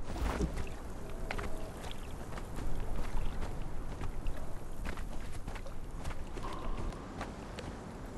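Footsteps crunch on sand.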